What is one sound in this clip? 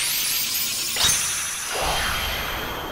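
A sharp magical blast bursts and whooshes.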